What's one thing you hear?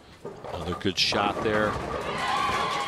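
Bowling pins crash and scatter.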